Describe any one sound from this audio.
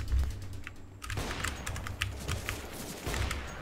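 A sniper rifle fires a single loud shot.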